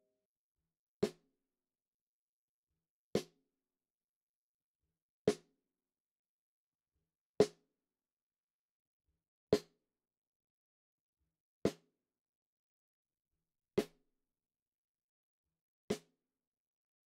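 A drumstick clicks sharply against the rim of a snare drum, once every two seconds.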